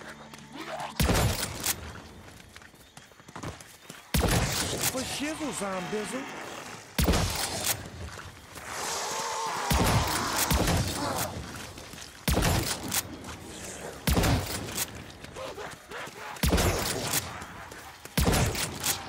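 Loud gunshots blast in bursts, each with a booming echo.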